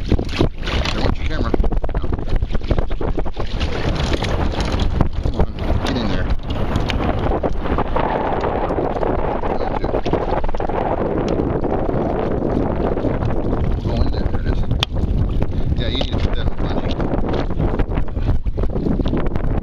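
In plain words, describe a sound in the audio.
Water laps and splashes against a boat.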